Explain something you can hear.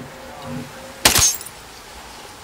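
A pistol fires a single sharp shot.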